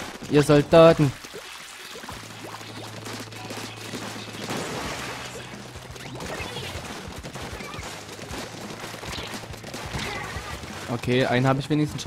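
Ink guns spray and splatter in quick bursts.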